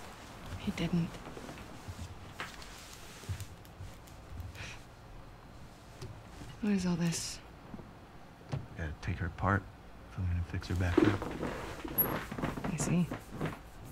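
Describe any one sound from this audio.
A young woman speaks quietly and flatly.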